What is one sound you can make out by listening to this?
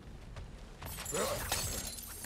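An axe whooshes through the air.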